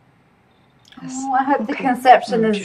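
A middle-aged woman speaks with animation, close to a microphone.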